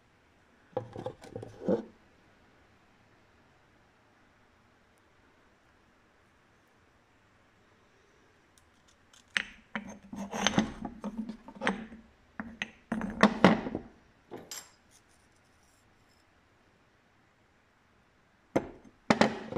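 Stones knock and scrape against a hard surface as they are handled.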